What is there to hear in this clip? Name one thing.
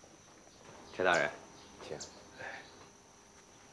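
An elderly man speaks briefly in a raised voice.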